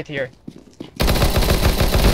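A submachine gun fires a rapid burst of shots.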